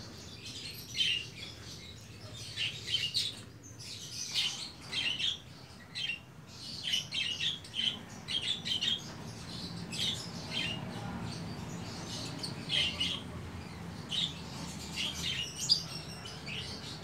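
Small kittens mew with high, thin cries again and again.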